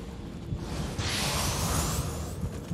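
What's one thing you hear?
A bright shimmering chime rings out.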